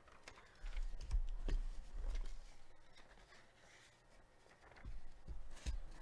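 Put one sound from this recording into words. Hands rustle and slide a cardboard sleeve close by.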